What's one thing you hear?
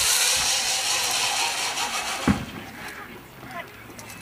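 A trolley whirs along a zip wire cable.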